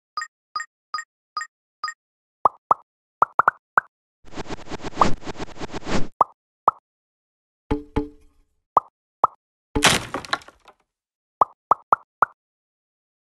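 Short electronic chimes ping again and again as items are collected.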